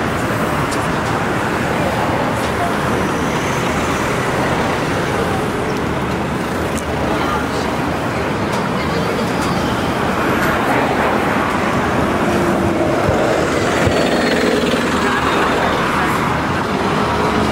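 City traffic rumbles steadily along a busy street outdoors.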